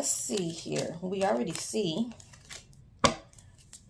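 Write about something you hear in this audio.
Playing cards rustle and tap as a hand picks them up.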